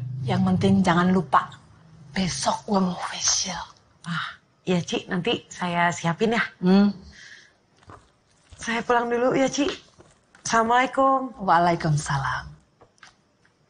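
A middle-aged woman speaks loudly and with animation, close by.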